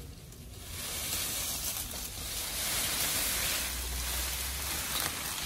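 A leafy branch rustles as it is dragged through leaves.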